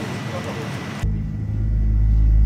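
A jet engine roars loudly and builds.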